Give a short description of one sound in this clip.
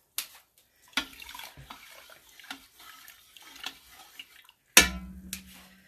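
Small objects splash into a pot of water.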